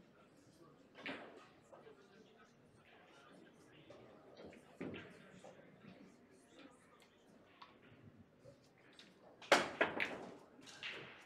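Billiard balls knock sharply against each other and the cushions.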